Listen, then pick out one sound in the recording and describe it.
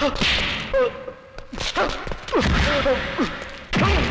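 A man cries out in pain.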